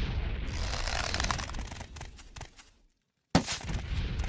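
A bowstring creaks as an arrow is drawn.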